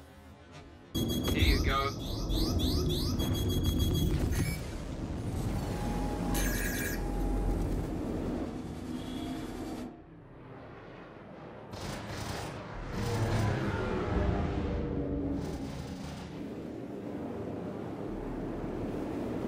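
A spaceship engine rumbles steadily.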